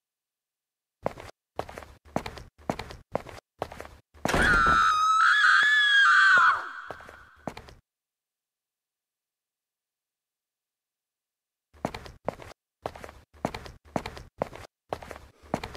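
Footsteps climb stairs at a steady pace.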